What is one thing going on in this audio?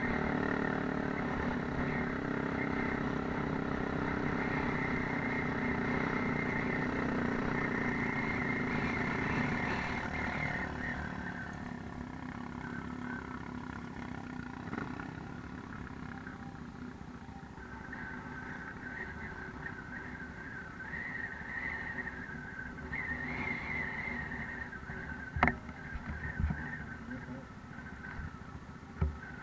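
A quad bike rumbles over a rough gravel track.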